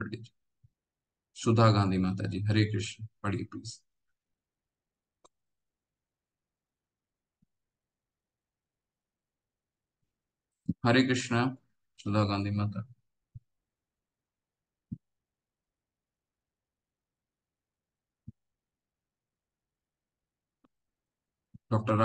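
A man speaks calmly through a microphone in short bursts, as on an online call.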